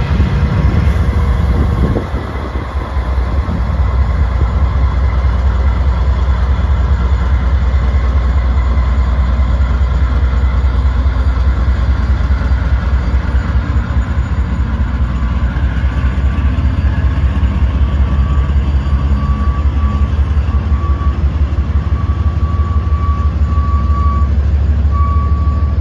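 Train wheels clatter rhythmically over the rails.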